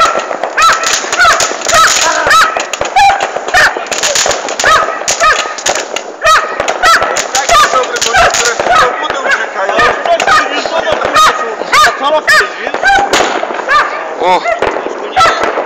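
Fireworks crackle and pop in quick bursts.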